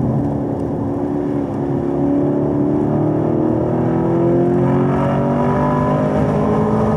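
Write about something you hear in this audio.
Tyres roar on the track.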